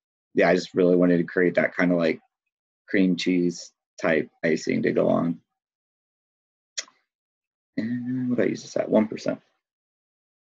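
A man talks calmly and close into a microphone, with pauses.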